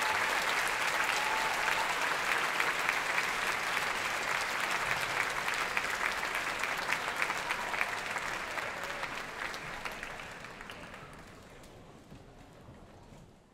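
A large audience applauds and cheers in a big hall.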